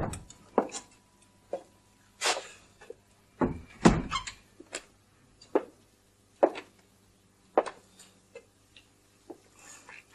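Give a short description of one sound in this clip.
Footsteps thud across a wooden floor.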